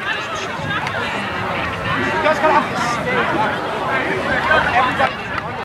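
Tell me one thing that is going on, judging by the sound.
Several young women chatter and talk over one another outdoors.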